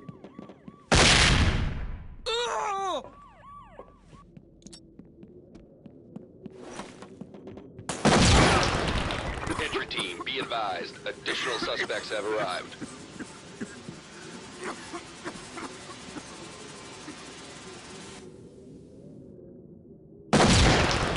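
A grenade bursts with a loud bang.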